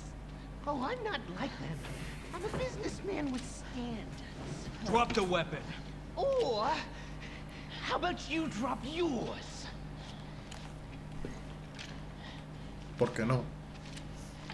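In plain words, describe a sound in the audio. A young man speaks calmly and mockingly, close by.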